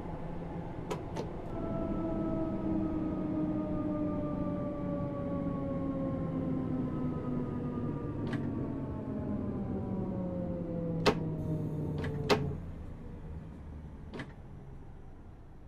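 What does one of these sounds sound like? Train wheels rumble on the rails.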